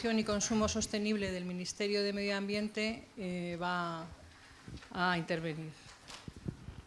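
A woman speaks with animation through a microphone in a large room.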